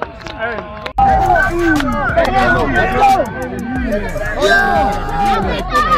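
A young man cheers and shouts outdoors.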